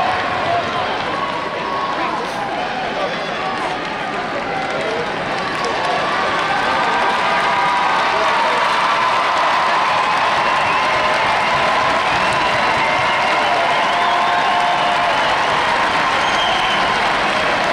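A large crowd murmurs and cheers in a big echoing arena, growing louder.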